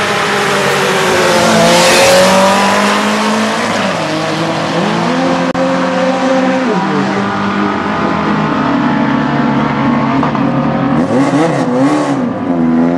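A car engine roars as the car launches and speeds away.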